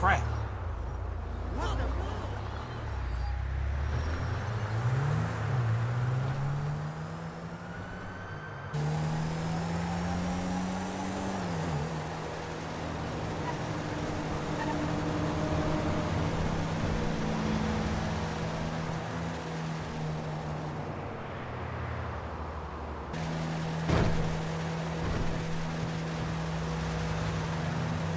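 A car engine hums and revs as the car drives along a road.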